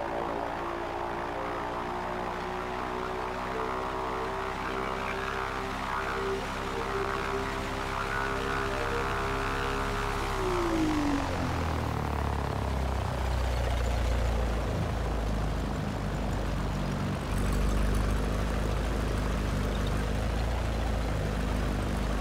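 A small propeller plane's engine drones steadily, then drops in pitch as it passes close by.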